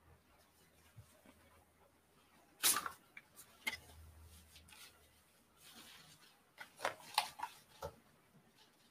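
Fabric rustles as a shirt is pulled off and another pulled on.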